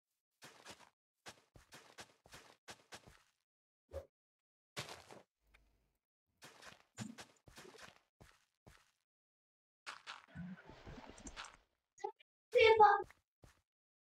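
Short crunching thuds of a hoe digging into soil repeat.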